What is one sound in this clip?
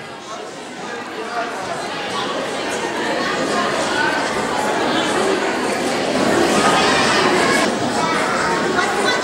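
A crowd of children and adults chatters noisily in a large echoing hall.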